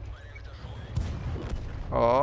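A shell explodes with a sharp boom.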